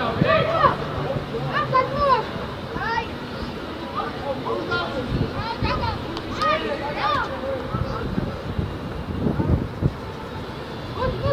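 Young players shout and call out across an open outdoor pitch.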